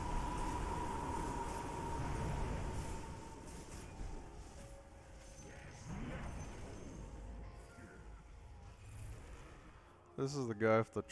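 Fantasy battle sounds clash and crackle with magic blasts.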